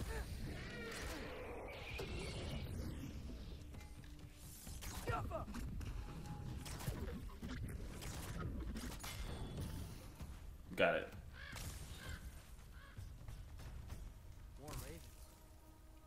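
Magical energy bursts crackle and fizz.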